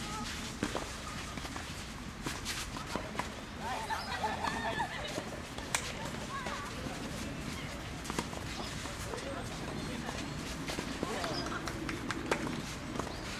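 Tennis balls are struck with rackets, popping sharply outdoors.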